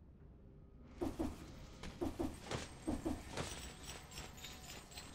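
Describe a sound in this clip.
Sharp slashing strikes come in quick bursts.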